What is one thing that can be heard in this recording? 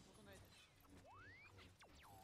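A small robot beeps and whistles in a rising tone.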